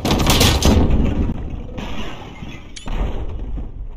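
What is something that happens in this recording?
Bricks crash and crumble as a structure collapses.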